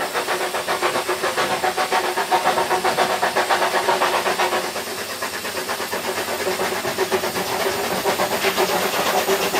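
A narrow-gauge steam locomotive chuffs rapidly as it approaches.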